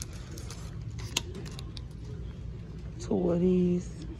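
A plastic package crinkles in a hand.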